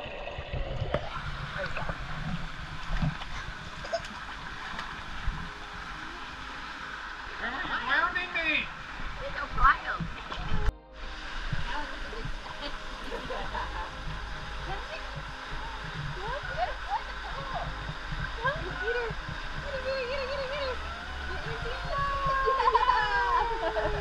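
Water splashes gently.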